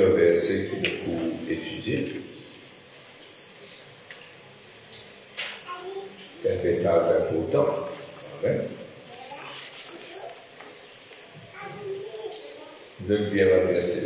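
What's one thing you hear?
A man speaks calmly through a microphone and loudspeakers in a large echoing hall.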